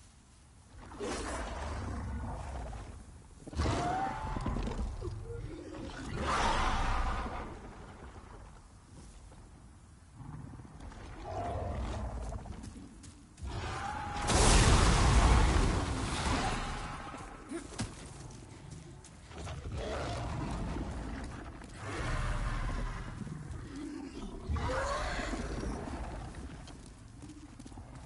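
A dragon roars loudly and repeatedly.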